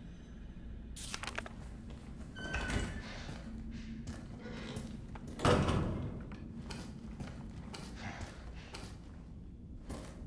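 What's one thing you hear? Footsteps walk slowly on a hard floor.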